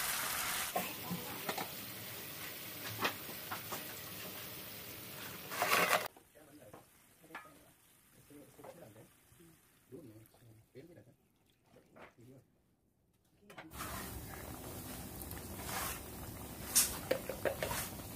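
Hot liquid sizzles and bubbles loudly in a pan.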